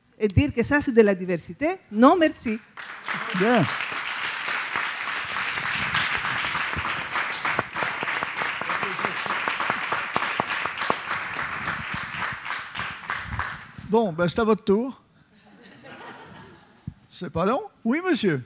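An elderly man speaks through a microphone in an echoing hall.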